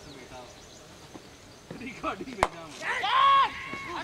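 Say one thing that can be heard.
A cricket bat knocks a ball far off.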